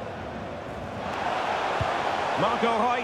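A stadium crowd cheers loudly.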